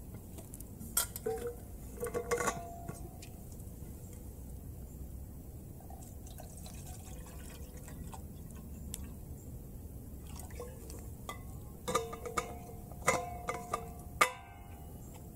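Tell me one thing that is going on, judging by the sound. A metal bottle clinks and rattles as a man handles it.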